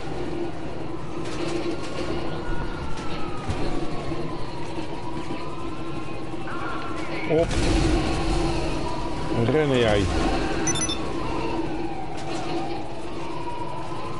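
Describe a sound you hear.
Police sirens wail up and down nearby.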